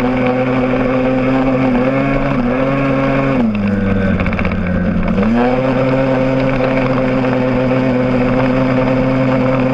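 A motorcycle engine hums steadily up close, dropping in pitch as the rider eases off and then picking up again.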